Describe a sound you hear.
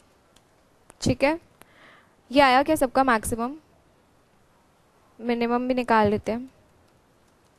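A young woman speaks calmly into a close microphone, in short phrases.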